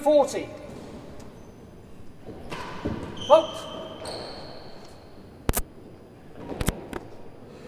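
A ball thuds against a wall and echoes around a large hall.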